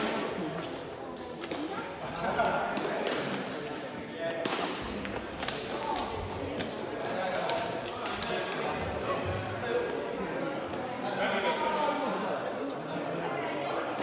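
Several men and women chatter and call out in the background.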